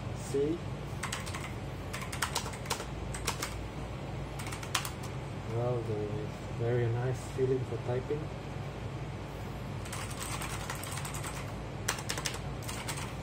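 Keys on a mechanical keyboard clack in quick bursts.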